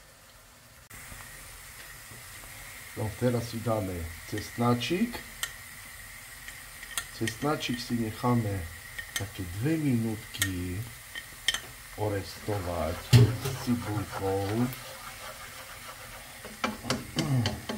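Onions sizzle gently in a hot pan.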